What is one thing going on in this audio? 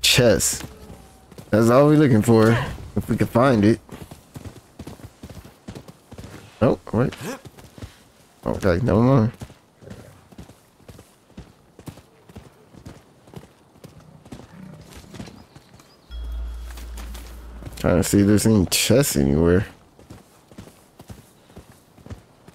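A horse's hooves thud in a quick gallop.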